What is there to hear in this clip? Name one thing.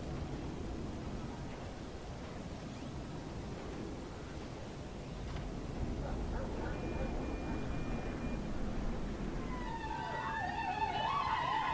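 A distant city hums with traffic.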